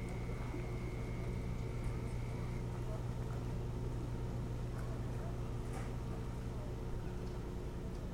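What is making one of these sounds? An osprey shifts softly on a nest of dry twigs.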